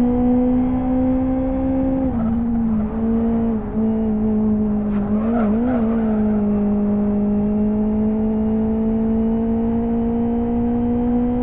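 A racing car engine drones steadily, dropping in pitch with gear changes and rising again.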